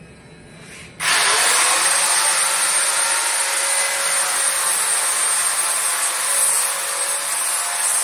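An angle grinder whines loudly as it cuts through tile.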